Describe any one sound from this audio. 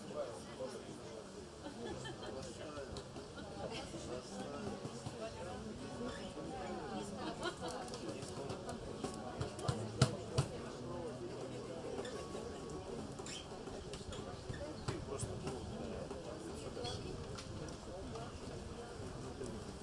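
An electric bass guitar plays along.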